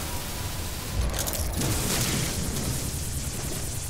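A deep energy pulse booms and whooshes outward.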